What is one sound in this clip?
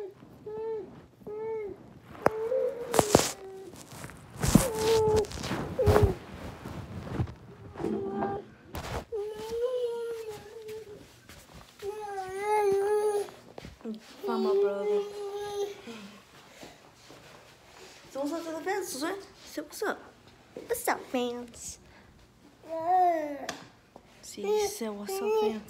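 A toddler babbles and squeals.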